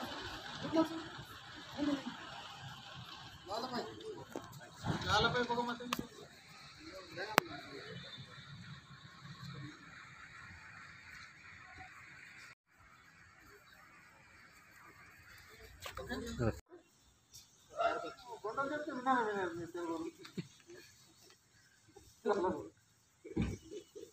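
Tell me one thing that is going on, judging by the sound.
Men speak and call out nearby, outdoors.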